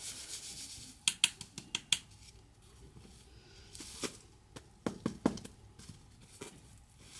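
A woven basket knocks and taps as it is handled.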